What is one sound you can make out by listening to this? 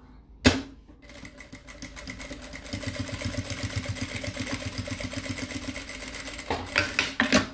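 A sewing machine stitches rapidly with a steady rattling hum.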